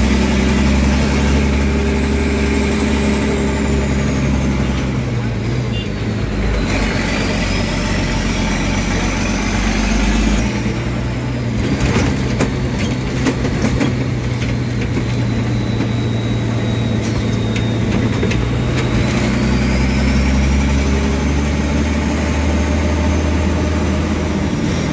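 Loose metal parts rattle and clatter as the vehicle drives over the road.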